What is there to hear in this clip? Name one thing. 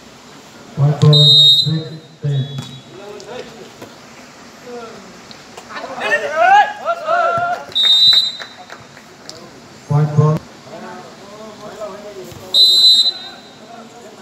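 A referee's whistle blows in short, sharp blasts.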